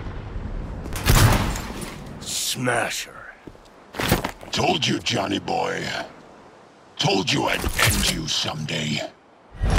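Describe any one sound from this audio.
A man speaks gruffly and menacingly, close by.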